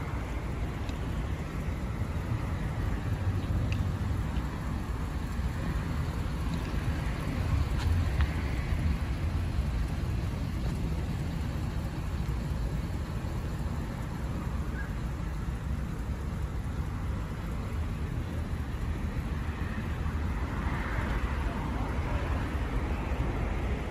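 A large engine idles nearby with a steady low rumble.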